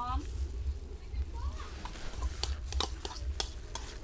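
Sliced vegetables drop with soft patters into liquid.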